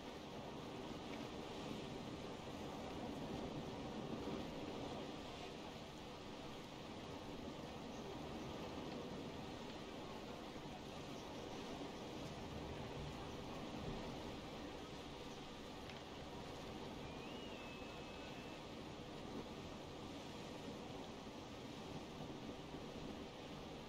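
Wind blows steadily over open sea.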